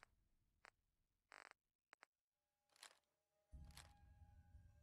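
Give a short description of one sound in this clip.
Short electronic beeps sound as a menu is scrolled.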